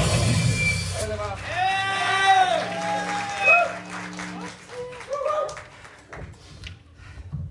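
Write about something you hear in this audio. A live band plays loud rock music with electric guitars and drums, then stops.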